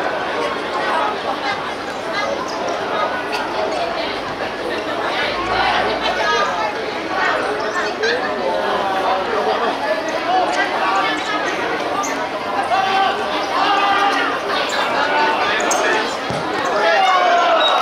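Young men shout to each other while playing.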